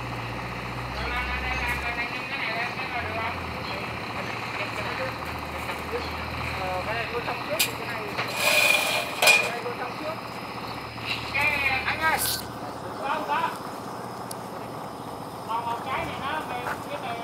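Men talk to each other nearby, outdoors.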